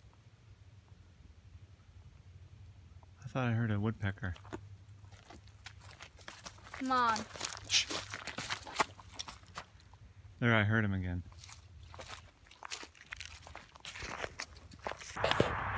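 Footsteps crunch on dry leaves and gravel.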